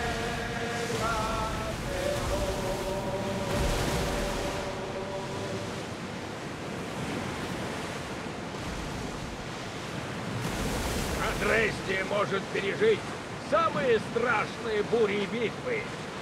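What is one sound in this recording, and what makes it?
Rough sea waves wash and splash steadily.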